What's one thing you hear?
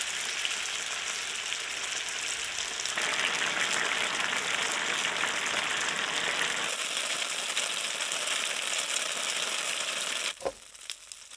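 Dumplings sizzle and crackle loudly in hot oil.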